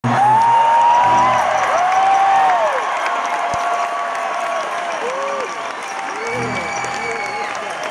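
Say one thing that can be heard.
An acoustic guitar is strummed through loudspeakers.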